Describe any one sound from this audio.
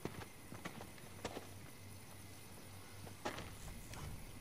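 Footsteps patter on a dirt path.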